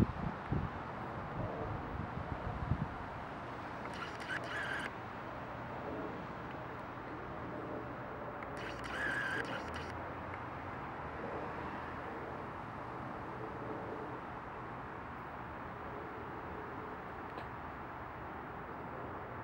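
Wind blusters outdoors, rushing and buffeting.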